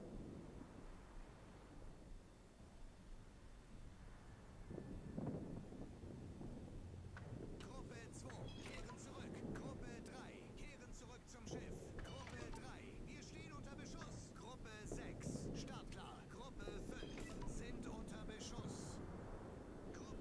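Heavy ship guns fire with deep rumbling booms.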